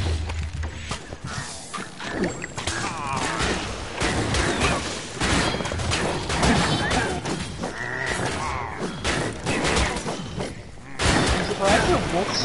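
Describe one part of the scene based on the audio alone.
Magic blasts crackle and burst.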